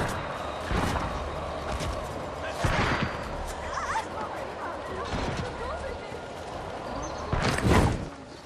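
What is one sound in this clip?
Wind rushes past a gliding figure.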